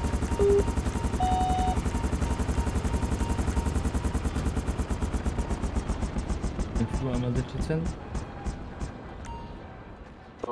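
A helicopter's rotor thumps rapidly and slowly winds down.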